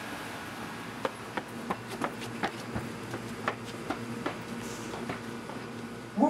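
Footsteps run quickly on pavement outdoors.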